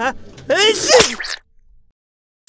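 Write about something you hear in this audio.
A young man sneezes loudly.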